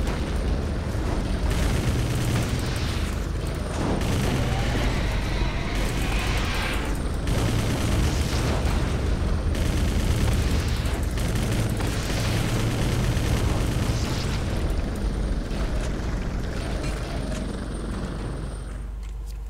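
Explosions boom and rumble one after another.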